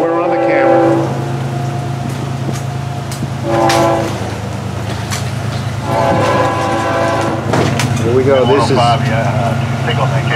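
A diesel locomotive rumbles past in the distance.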